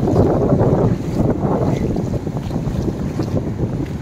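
Feet splash through shallow water.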